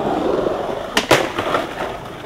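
A skateboard slams onto concrete with a sharp clack.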